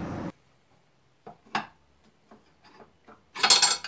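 A metal part clicks and knocks as a man handles it.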